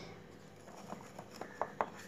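A knife scrapes around the inside of a metal tin.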